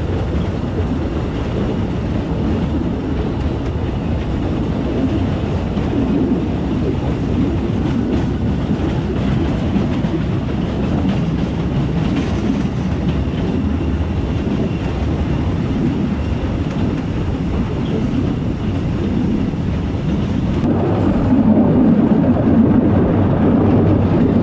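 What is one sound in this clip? An open train car rumbles steadily along a track.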